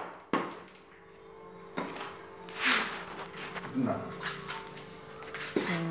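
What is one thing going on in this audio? Wet debris scrapes across a floor.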